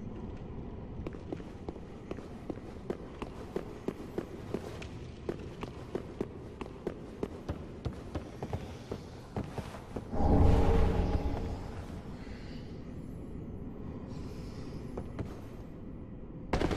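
Armoured footsteps clank in quick rhythm on stone.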